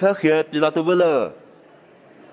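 An elderly man speaks with emotion close by.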